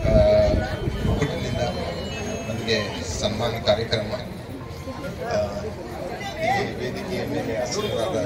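A man speaks with animation into a microphone through loudspeakers outdoors.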